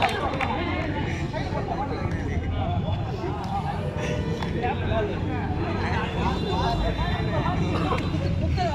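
A crowd of young men chatter and call out outdoors.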